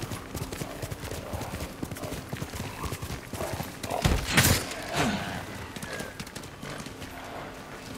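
A horse gallops, hooves thudding rapidly on the ground.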